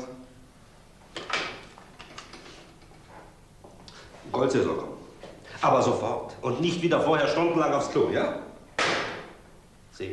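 A middle-aged man talks on a telephone.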